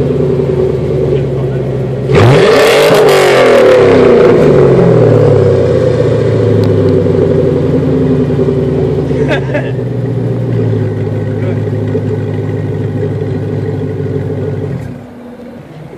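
A car engine idles with a deep, throbbing rumble.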